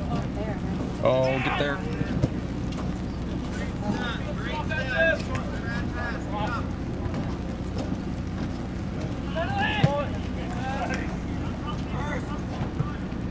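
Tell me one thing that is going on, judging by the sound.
Young players shout to one another across an open field.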